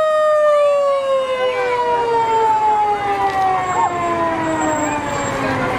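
A fire truck engine rumbles past.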